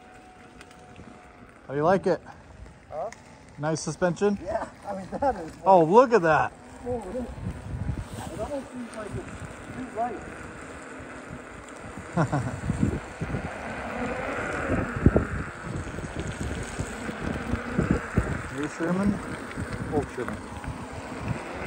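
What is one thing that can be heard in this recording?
An electric unicycle rolls along asphalt with a soft hum.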